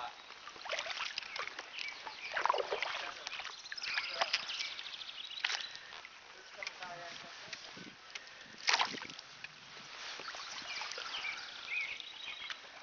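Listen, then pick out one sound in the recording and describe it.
Water laps gently against the hull of a small boat.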